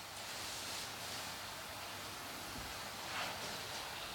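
A brush strokes softly against a wall.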